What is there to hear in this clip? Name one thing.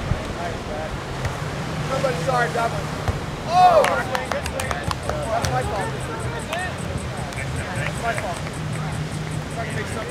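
Young men and women call out and shout to each other at a distance outdoors.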